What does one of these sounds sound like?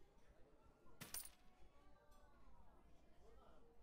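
A coin clinks and spins on a wooden table.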